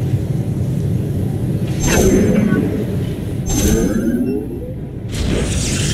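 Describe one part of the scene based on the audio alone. A shimmering energy effect hums and sparkles as a unit warps in.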